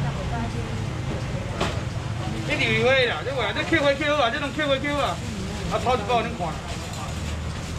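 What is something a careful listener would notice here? A plastic bag rustles as it is filled.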